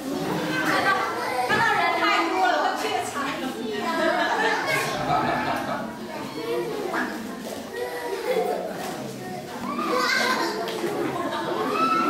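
A young woman talks cheerfully to the children.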